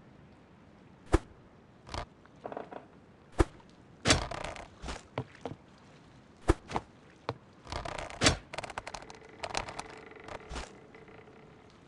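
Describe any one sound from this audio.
Short game pickup sounds click and pop.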